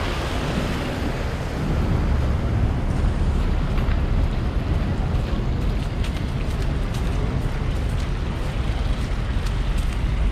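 Footsteps crunch and scuff on slushy pavement.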